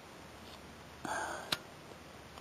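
Dry twigs rustle and scrape against a small metal can.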